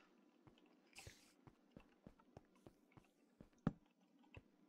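Soft footsteps tap on stone at a steady pace.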